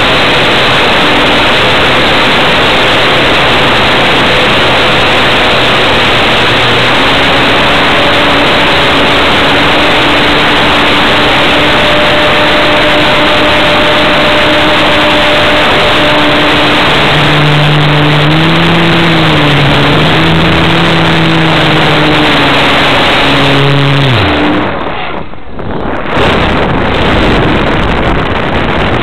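Wind rushes loudly past a small plane.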